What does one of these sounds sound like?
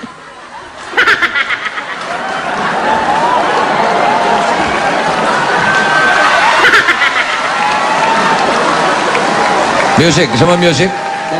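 A crowd cheers and claps loudly.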